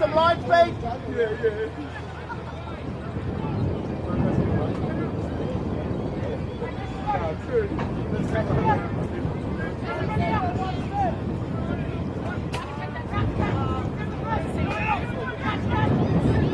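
Young women talk and call out to one another in a huddle outdoors.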